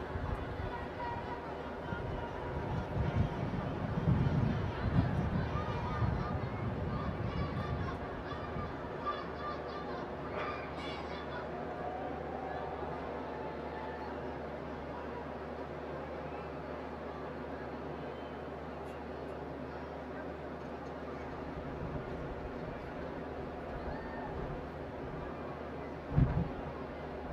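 A large crowd murmurs outdoors in the distance.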